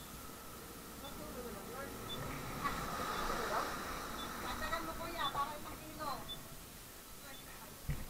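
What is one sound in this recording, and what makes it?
Adult men and women talk in a crowd nearby.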